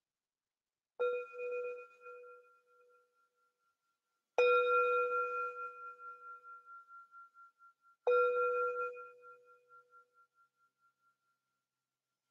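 A singing bowl is struck and rings out with a long, fading tone.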